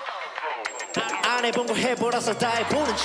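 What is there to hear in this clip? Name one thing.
A young man sings into a headset microphone over the music.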